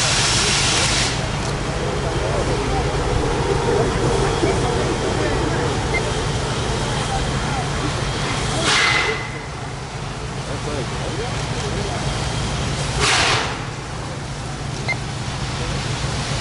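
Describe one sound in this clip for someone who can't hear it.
A steam locomotive rumbles and chugs as it approaches.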